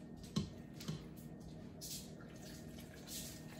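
Water pours into a pot.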